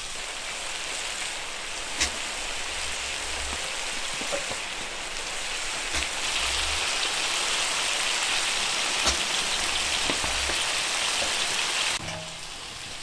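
Meat and vegetables sizzle loudly in a hot pan.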